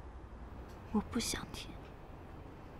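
A young woman says a short line in a tearful voice.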